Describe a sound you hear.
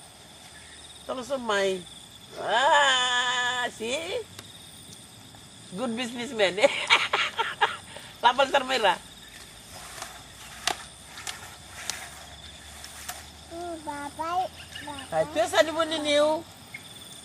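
A boy calls out loudly from up a tree outdoors.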